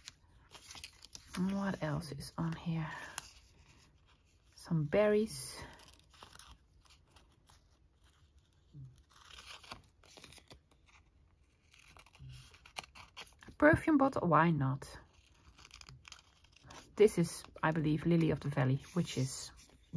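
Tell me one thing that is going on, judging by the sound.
Thin paper rustles and crinkles.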